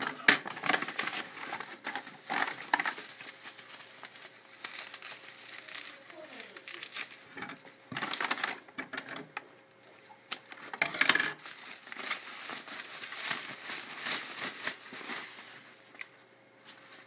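Bubble wrap crinkles and rustles as it is handled.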